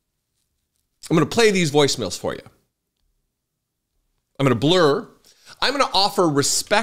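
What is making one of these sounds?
A middle-aged man speaks with animation into a close microphone, pausing between phrases.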